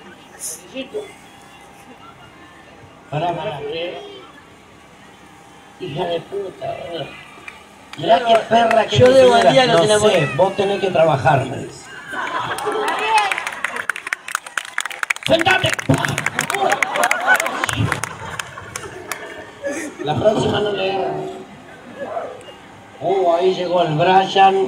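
Young men and women in a crowd chatter and call out nearby outdoors.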